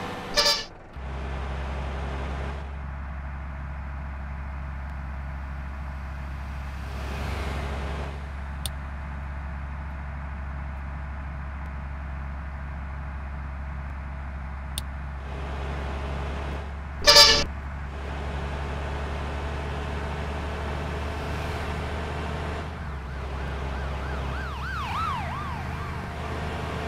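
A bus engine drones steadily at speed.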